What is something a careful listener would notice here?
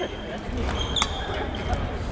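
A badminton racket strikes a shuttlecock with a sharp pop.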